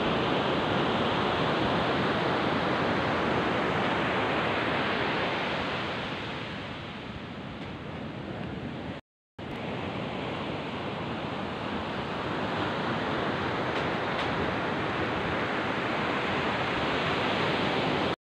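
Waves break and wash onto a beach.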